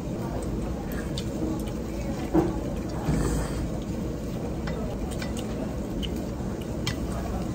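A young woman slurps noodles close by.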